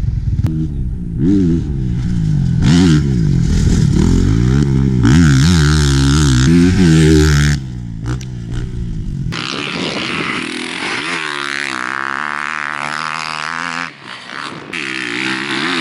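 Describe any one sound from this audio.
A dirt bike engine revs and roars past on a track.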